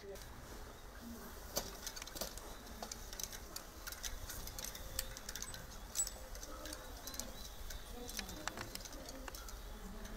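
A bicycle rolls over grass.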